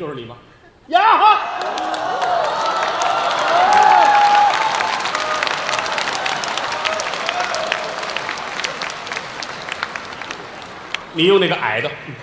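An audience laughs and applauds in a large hall.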